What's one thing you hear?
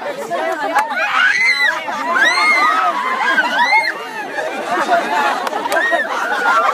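Young women scream and laugh loudly nearby.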